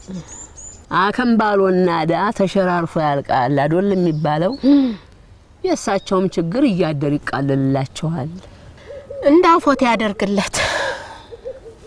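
An older woman speaks close to the microphone, with feeling.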